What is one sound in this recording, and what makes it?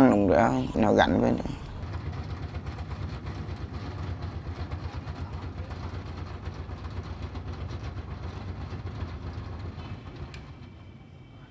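A small boat motor chugs steadily, then fades.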